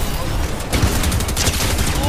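A shotgun fires in a video game.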